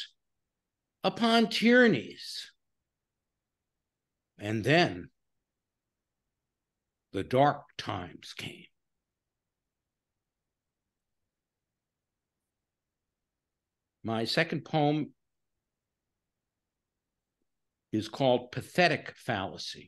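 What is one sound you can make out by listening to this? A man speaks calmly in short phrases with long pauses, heard through a microphone on an online call.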